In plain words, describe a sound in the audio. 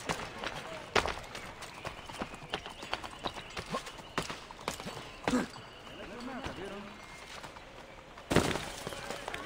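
A thud sounds as someone lands after a jump.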